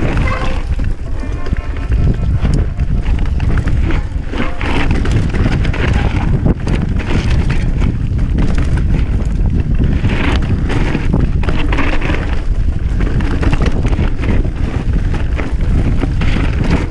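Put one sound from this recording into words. Wind buffets loudly across the microphone outdoors.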